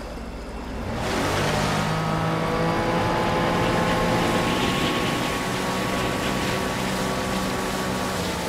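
A boat engine drones steadily, rising as it speeds up.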